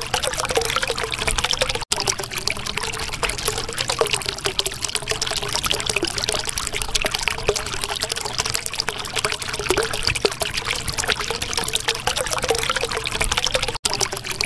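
Water bubbles and gurgles steadily.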